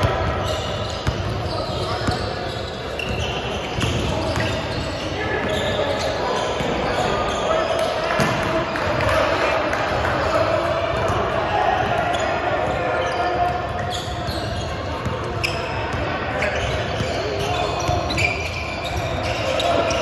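Several men shout and call out to each other in a large echoing gym.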